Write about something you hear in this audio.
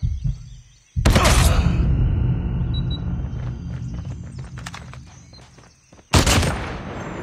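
A rifle fires loud, echoing shots.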